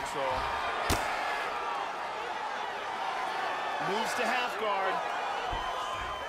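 Punches land with dull thuds.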